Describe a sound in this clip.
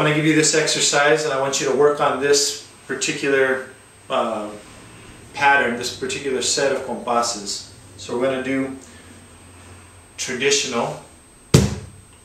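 A man talks calmly to the listener, close by.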